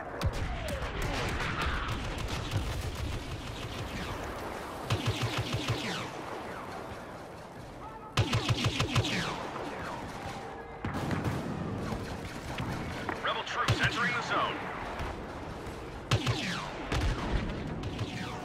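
Laser bolts whine and zip past.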